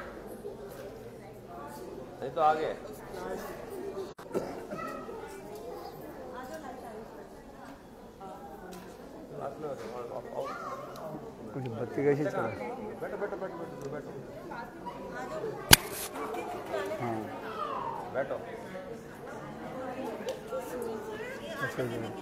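A crowd of people chatter in the background.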